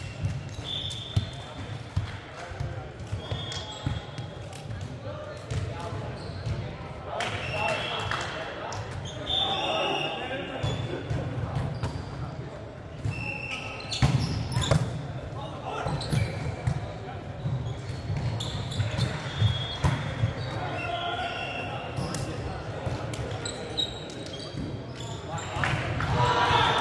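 A volleyball is hit with sharp slaps in a large echoing hall.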